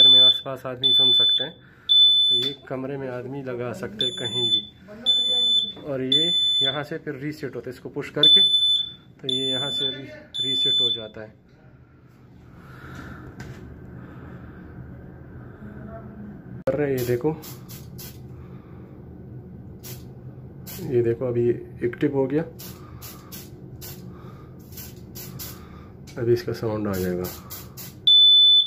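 A smoke alarm beeps loudly in short, sharp, repeated bursts.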